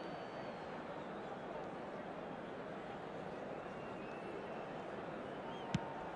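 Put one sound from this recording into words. A large crowd roars steadily.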